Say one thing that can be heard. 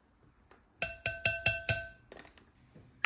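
A spoon taps against a glass bowl with a ringing clink.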